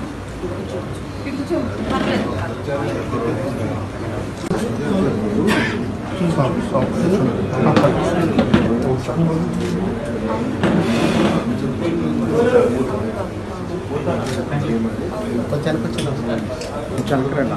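Several men and women murmur in the background.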